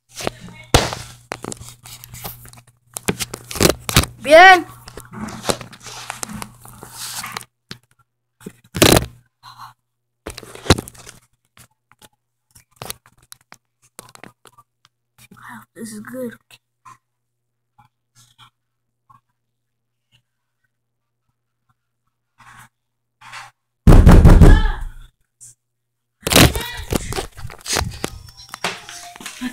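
A phone knocks and rustles as it is handled.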